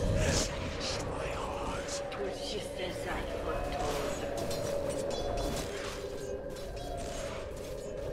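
Weapons clash and strike in quick succession.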